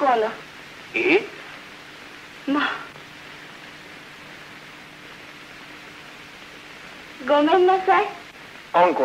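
An elderly man speaks with animation.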